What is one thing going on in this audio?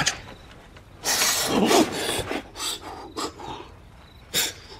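A person blows hard, puffing air.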